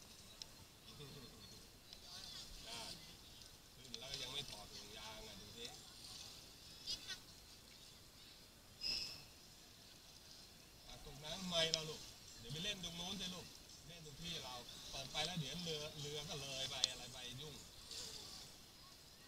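Children talk and call out nearby in a raft.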